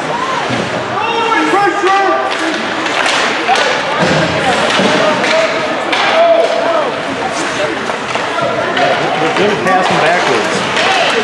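Many voices shout and call out in a large echoing rink.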